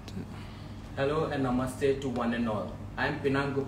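A young man speaks warmly and clearly, close by.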